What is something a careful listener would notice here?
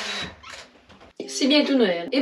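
A door shuts with a click.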